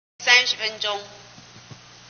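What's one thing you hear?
A middle-aged woman speaks briefly through a microphone.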